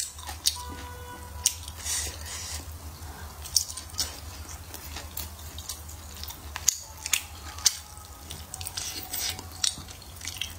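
A young woman chews food wetly and noisily close to a microphone.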